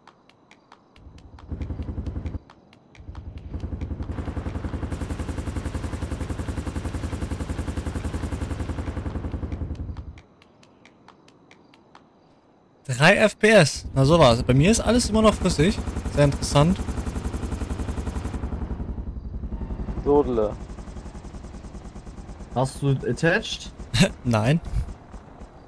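A helicopter's rotor thuds steadily nearby.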